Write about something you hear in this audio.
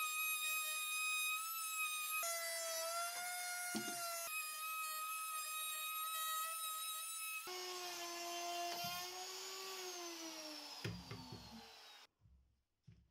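An electric router whines loudly as it cuts wood, then winds down.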